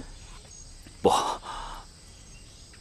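A second man answers calmly in a low voice, close by.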